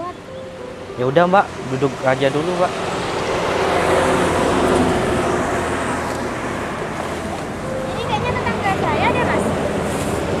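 A young man talks nearby.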